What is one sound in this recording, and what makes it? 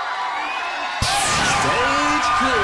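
A bright swooshing fanfare sounds as a stage is cleared.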